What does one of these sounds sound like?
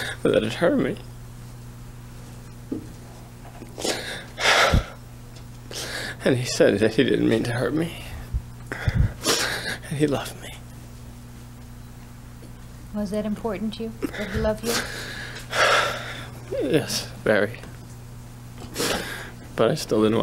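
A young man speaks haltingly and tearfully into a microphone.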